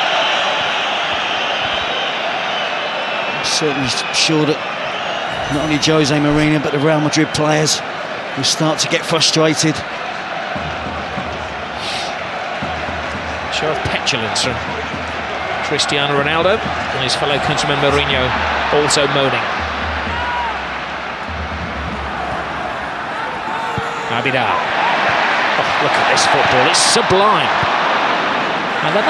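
A large stadium crowd roars and chants steadily, swelling louder near the end.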